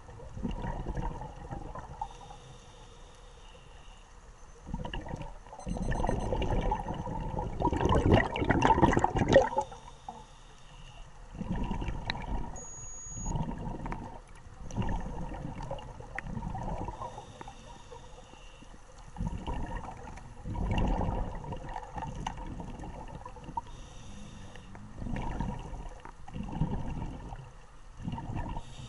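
Air bubbles gurgle and rush out in bursts underwater.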